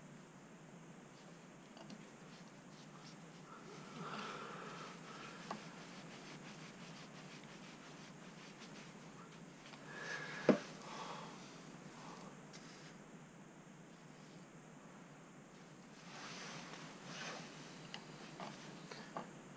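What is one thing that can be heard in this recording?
A screwdriver scrapes and clicks against a metal part close by.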